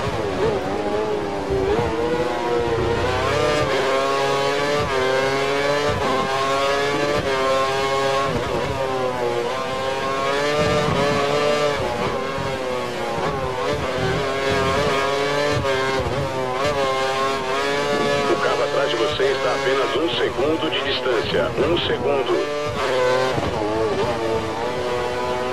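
A racing car engine screams at high pitch, rising and falling as gears change.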